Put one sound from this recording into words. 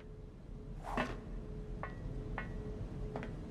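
A woman's high heels click on a hard floor.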